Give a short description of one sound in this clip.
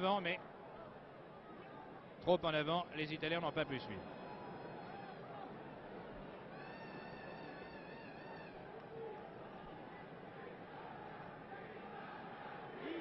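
A large stadium crowd murmurs in the distance.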